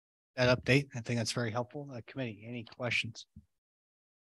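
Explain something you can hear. A young man speaks calmly into a microphone over an online call.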